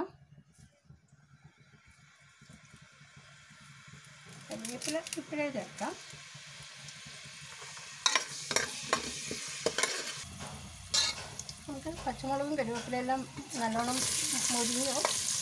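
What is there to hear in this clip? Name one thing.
Vegetables sizzle in hot oil, growing louder.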